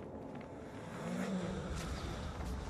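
A bull gives a short, low moo close by.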